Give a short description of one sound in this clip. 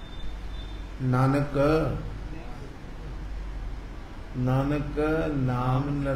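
An elderly man sings slowly into a microphone, in long held notes.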